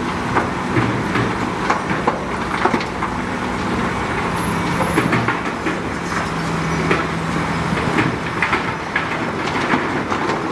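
Rocks scrape and clatter under a bulldozer blade.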